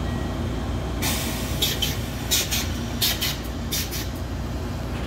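Metal wheels screech and clank on the rails.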